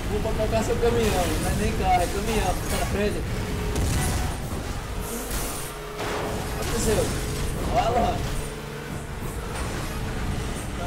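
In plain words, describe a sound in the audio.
Racing car engines roar at high speed.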